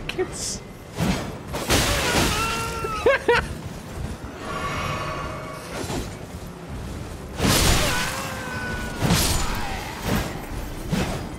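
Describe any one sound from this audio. Metal weapons strike and clash.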